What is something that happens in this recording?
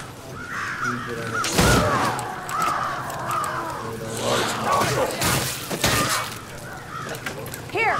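A sword slashes and strikes.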